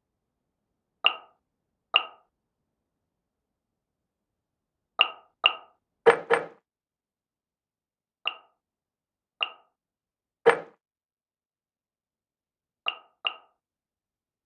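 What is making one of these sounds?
Short menu clicks chime now and then.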